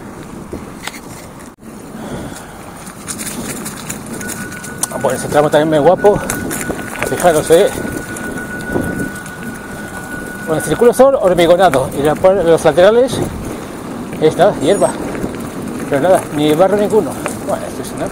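Bicycle tyres crunch and rattle over a rough gravel path.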